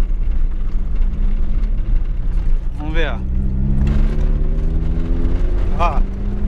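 A car engine revs up and rises in pitch.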